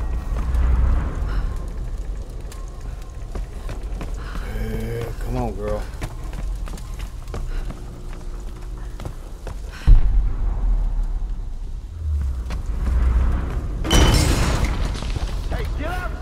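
Fire crackles nearby.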